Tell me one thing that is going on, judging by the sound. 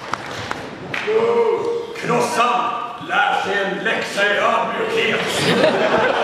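A man speaks loudly and expressively in an echoing hall.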